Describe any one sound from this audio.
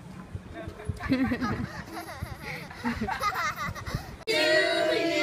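A young girl shouts and laughs excitedly outdoors.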